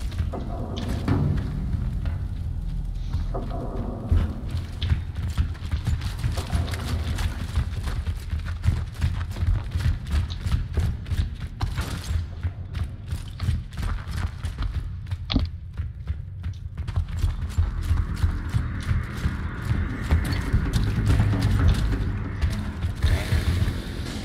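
Heavy armoured footsteps thud on a hard floor.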